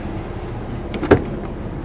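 A hand clicks a car door latch.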